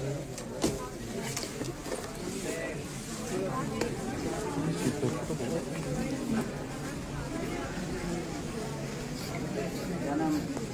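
A crowd of men and women talk over one another in a large echoing hall.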